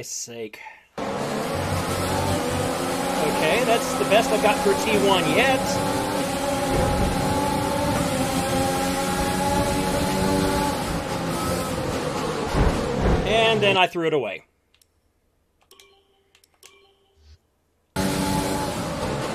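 A racing car engine roars at high revs, shifting up through the gears.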